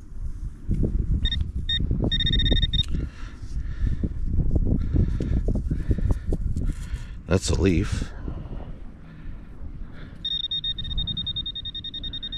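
A hand scrapes and pats through damp sand close by.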